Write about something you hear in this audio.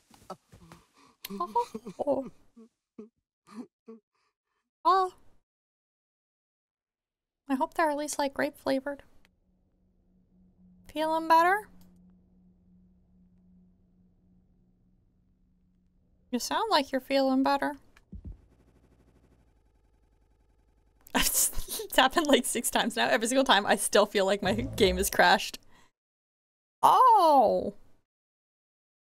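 A young woman talks with animation close to a microphone, in short bursts.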